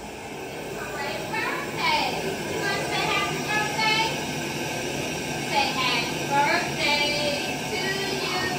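A woman speaks gently to a small child nearby.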